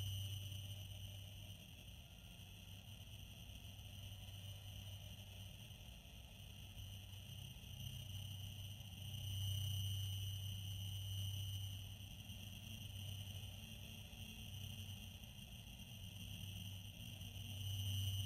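Spaceship engines roar steadily with a low rumble.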